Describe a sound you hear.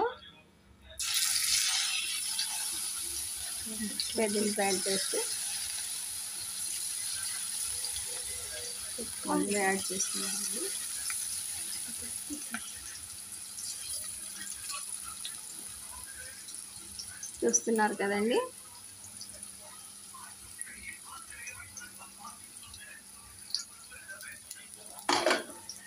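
Hot oil sizzles and crackles steadily as food fries.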